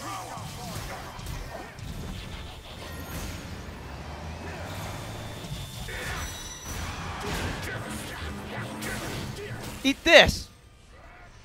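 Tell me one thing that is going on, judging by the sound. Energy blasts zap and crackle in quick bursts.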